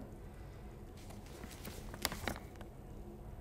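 Paper rustles and crinkles as a sheet is unfolded.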